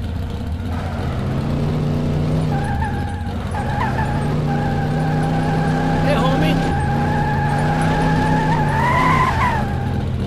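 Tyres screech as a car skids.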